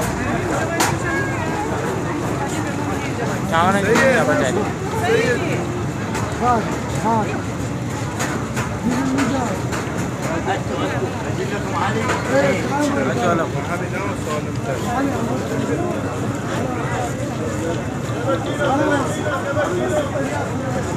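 A crowd of adults talks close by, with voices overlapping.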